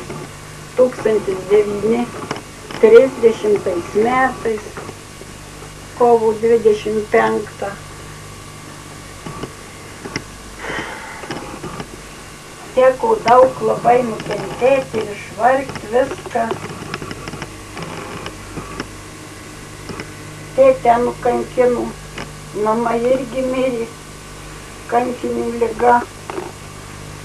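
An elderly woman speaks calmly and slowly nearby.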